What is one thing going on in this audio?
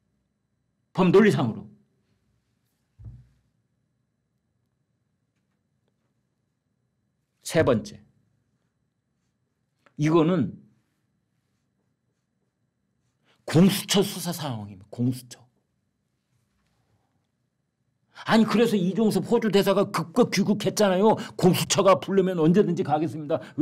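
An elderly man speaks with animation into a nearby microphone, with long pauses between phrases.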